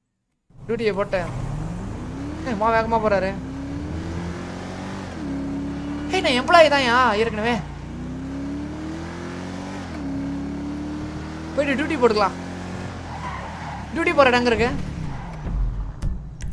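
A car engine revs and shifts gears as the car speeds along.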